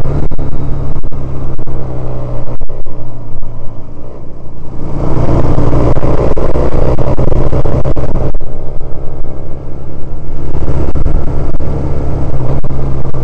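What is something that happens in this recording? A small twin-cylinder commuter motorcycle engine hums as it rides along.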